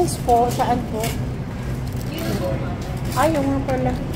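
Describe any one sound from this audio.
Metal utensils rattle in a metal container.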